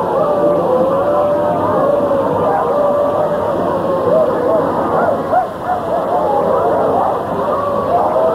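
A crowd murmurs and talks loudly nearby.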